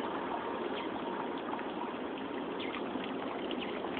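A fountain trickles and splashes into a stone basin.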